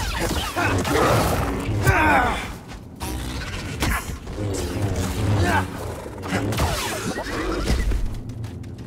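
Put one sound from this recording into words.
A large beast roars and snarls loudly.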